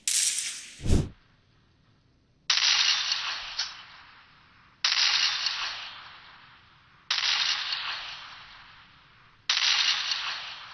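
Gunshots from a mobile game ring out in bursts through a small speaker.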